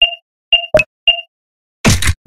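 Short electronic beeps sound in quick succession.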